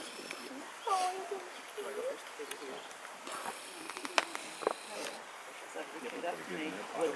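A man speaks softly outdoors.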